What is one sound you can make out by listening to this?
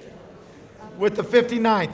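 A young man speaks loudly to a crowd.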